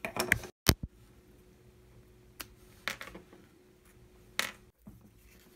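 Thin wooden sticks click and tap against each other.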